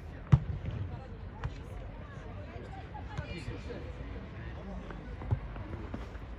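A ball is kicked with a dull thump outdoors.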